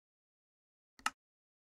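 A single soft click sounds.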